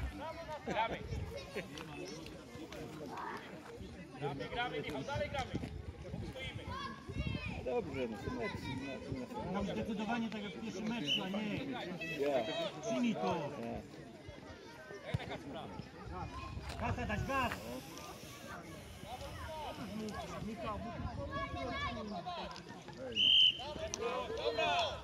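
Young children shout and call out across an open field.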